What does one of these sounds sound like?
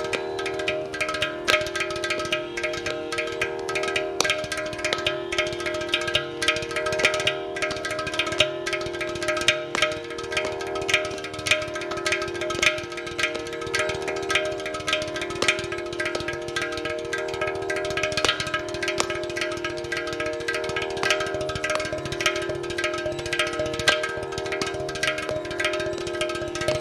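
A clay pot drum is struck with quick taps.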